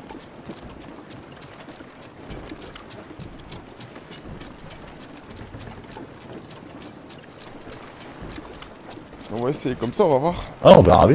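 A ship's wheel clicks steadily as it turns.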